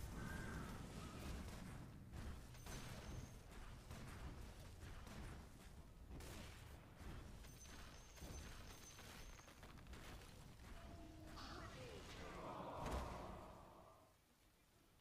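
Fantasy battle effects clash and crackle in a video game.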